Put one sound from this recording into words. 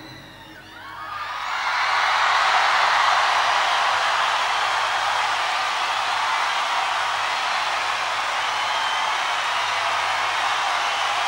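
A huge outdoor crowd cheers and roars steadily.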